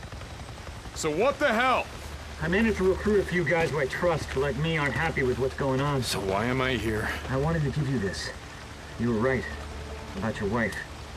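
A man speaks in a rough, tense voice close by.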